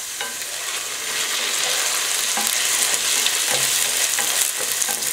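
Rice and diced vegetables sizzle in a hot pot.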